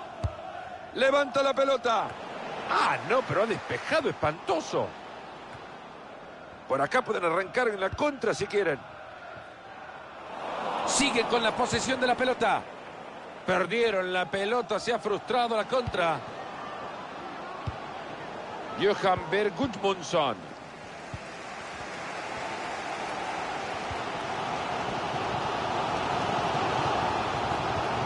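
A large stadium crowd roars steadily, swelling louder toward the end.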